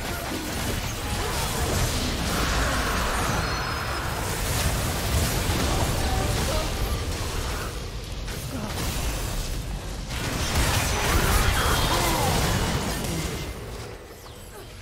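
Video game spells whoosh, crackle and burst during a fight.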